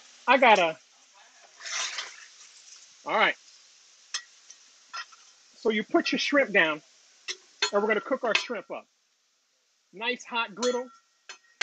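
A metal spatula scrapes across a griddle.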